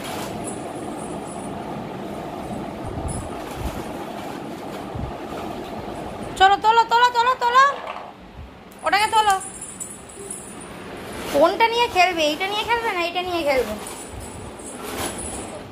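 A toy truck's plastic wheels roll across a hard floor.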